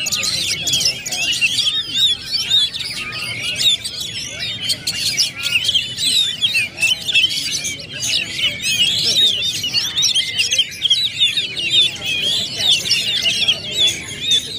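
Caged birds sing and chirp rapidly in high, busy trills.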